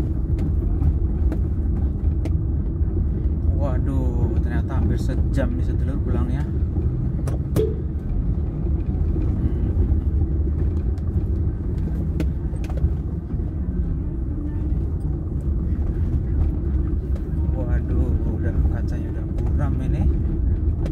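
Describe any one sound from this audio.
A car engine rumbles low and steadily while driving.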